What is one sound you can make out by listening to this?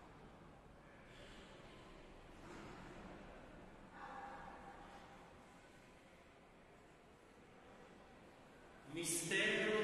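A priest chants softly.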